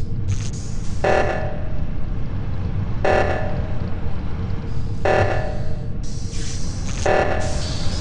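An alarm blares in short repeated bursts.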